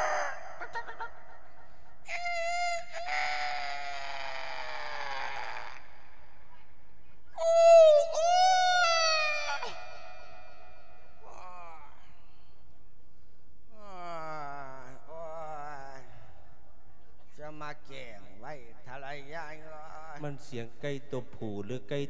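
A man speaks into a microphone in a sing-song, chanting voice.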